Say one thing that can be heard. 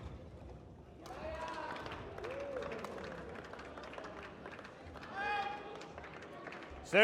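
Spectators cheer and clap.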